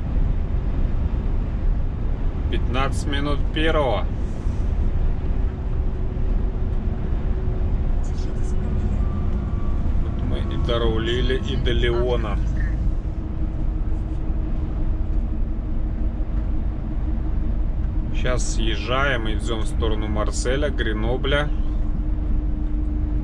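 A vehicle's engine and tyres rumble steadily on a road.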